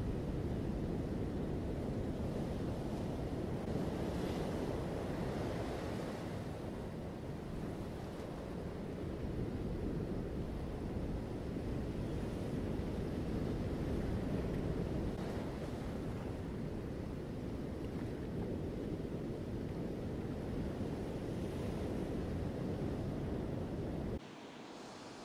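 Ocean waves crash and roar steadily.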